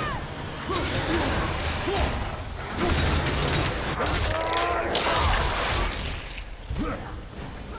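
Flames whoosh and roar in bursts.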